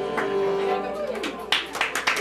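A fiddle plays a lively tune and stops.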